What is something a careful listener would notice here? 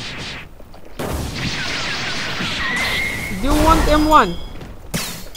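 A burst of energy blasts whooshes and explodes.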